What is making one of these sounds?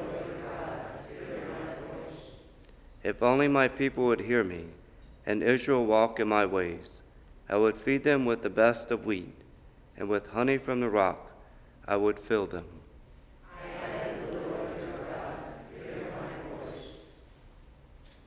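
A man chants and sings slowly through a microphone in a large echoing hall.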